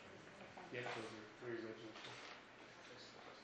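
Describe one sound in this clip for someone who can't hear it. A man speaks briefly through a microphone.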